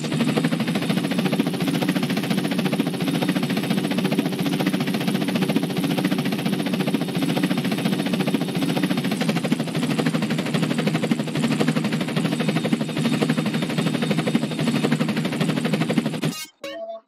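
A helicopter's rotor chops rapidly and steadily overhead.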